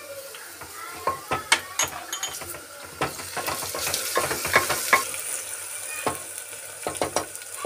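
A wooden spatula scrapes and knocks against a metal pot.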